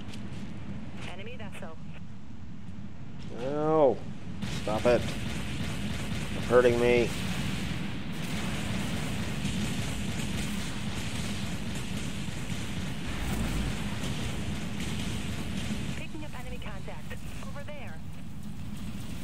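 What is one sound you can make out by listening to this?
A man talks casually into a headset microphone.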